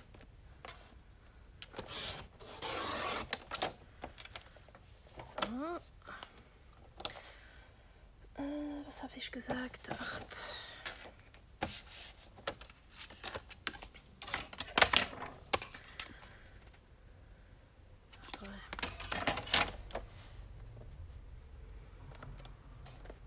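Paper rustles and slides across a board as hands move it.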